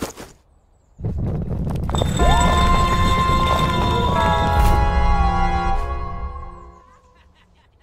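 A dramatic musical chord swells, holds and fades.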